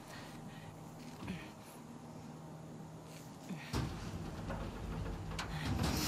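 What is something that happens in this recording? A metal door handle rattles.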